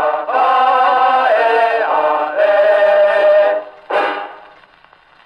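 Music plays from a wind-up gramophone record, thin and tinny, then ends.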